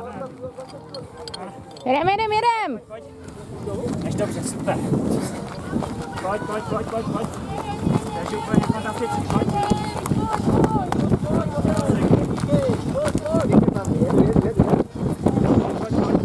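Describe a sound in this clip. Footsteps crunch on gravel as people run.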